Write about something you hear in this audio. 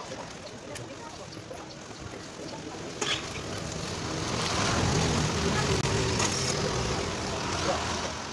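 A trowel scrapes over wet concrete.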